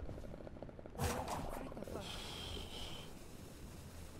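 A magical whoosh and chime ring out as a card is played.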